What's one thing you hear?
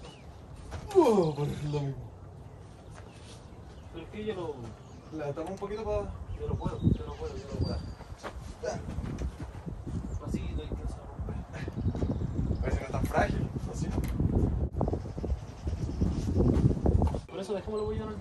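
A wooden wall frame creaks and knocks as it is pushed upright.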